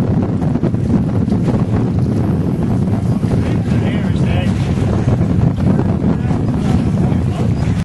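Water splashes as swimmers paddle through it.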